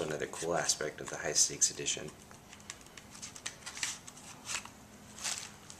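Plastic wrapping crinkles as it is peeled off a small box.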